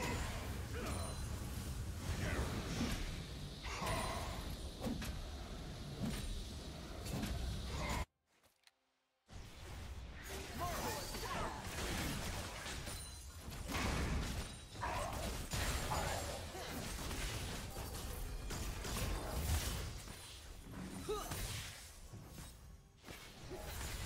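Video game spell effects whoosh, clash and crackle in a busy battle.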